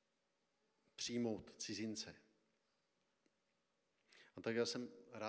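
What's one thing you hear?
A man speaks calmly through a microphone, with short pauses.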